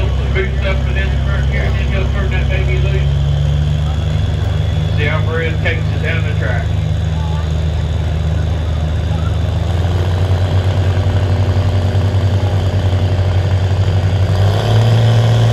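A heavy engine idles with a deep, loud rumble.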